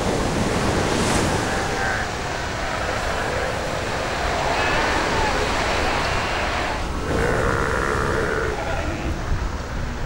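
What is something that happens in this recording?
Sea lions bark and bellow close by.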